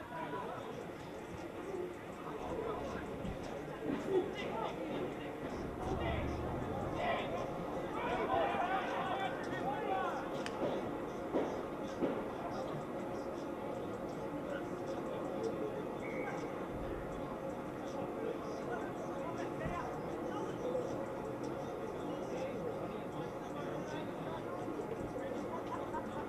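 Men shout and call out across an open field outdoors.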